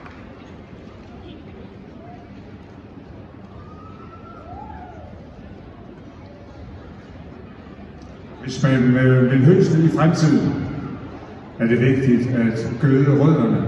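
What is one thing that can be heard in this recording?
A large crowd murmurs in an echoing arena.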